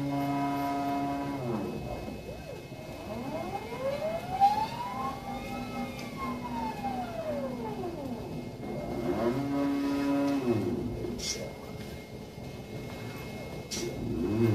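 Robotic arm motors whine, rising and falling in pitch as the arm moves.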